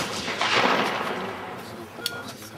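A shotgun fires nearby and the blast echoes away outdoors.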